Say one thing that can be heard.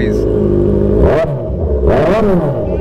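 A motorcycle engine revs up sharply a few times.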